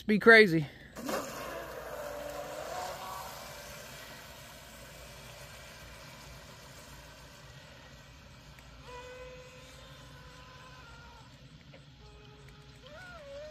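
A small model boat motor hums steadily across the water.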